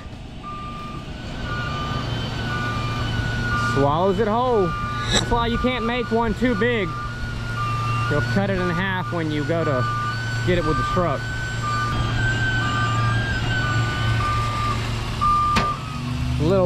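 A truck's warning beeper sounds in short, regular beeps.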